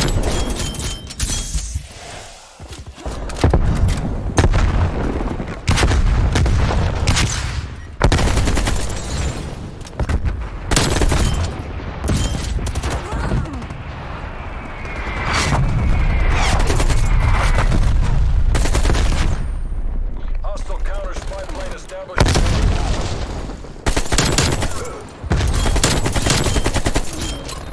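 Gunshots ring out with sharp cracks and booming echoes.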